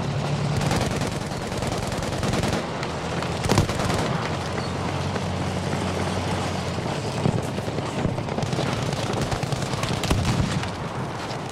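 A tank engine rumbles nearby.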